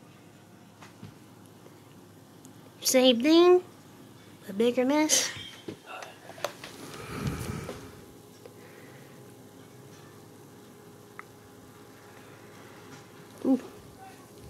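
Foam fizzes and bubbles softly.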